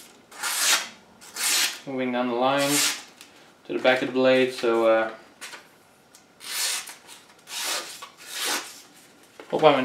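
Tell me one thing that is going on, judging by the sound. A blade scrapes against a sheath.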